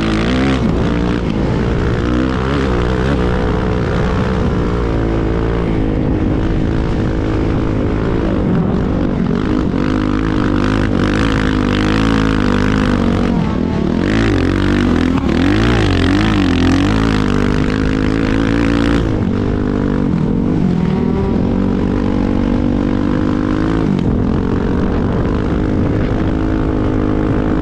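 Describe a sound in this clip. A dirt bike engine roars up close, its revs rising and falling.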